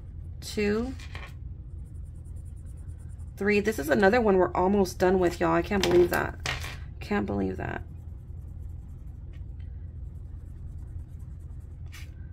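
A felt-tip marker scratches softly on paper.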